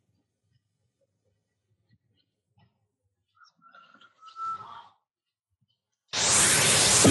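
Footsteps tap slowly across a hard floor.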